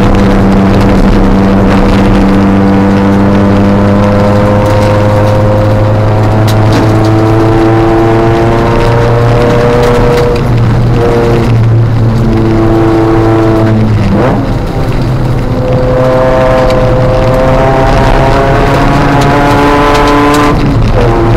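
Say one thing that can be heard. Gravel rattles and pings against the underside of the car.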